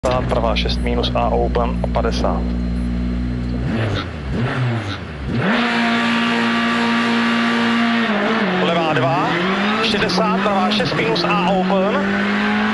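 A rally car engine idles with a deep rumble, then revs hard and roars as the car accelerates.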